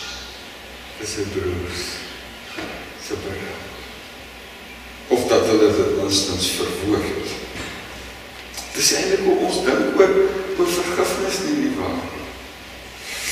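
An older man speaks calmly through a microphone in an echoing hall.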